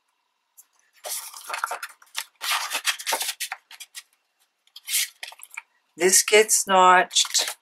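Paper rustles and crinkles as it is folded by hand.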